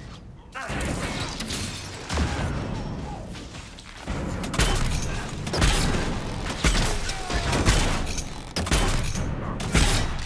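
Magic spells burst and whoosh with loud booms.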